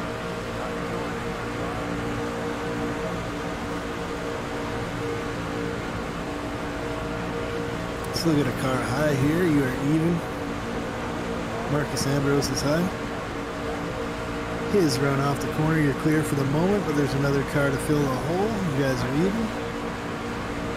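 A racing engine drones steadily at high revs.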